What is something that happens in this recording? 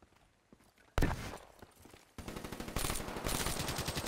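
A rifle fires sharply in quick bursts.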